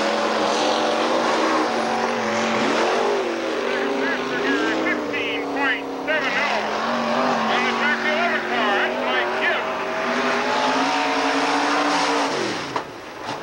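Race car engines roar loudly, revving up and down as the cars speed past.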